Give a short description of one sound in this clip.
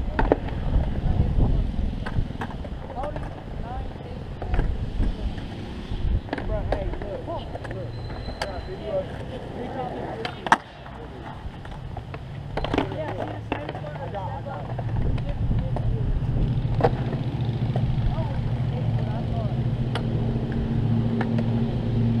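Skateboard wheels roll and rumble over concrete.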